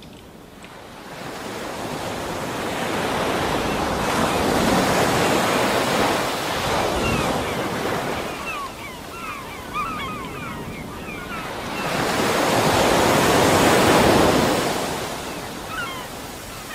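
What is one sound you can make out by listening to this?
Water rushes and bubbles as a diver swims underwater.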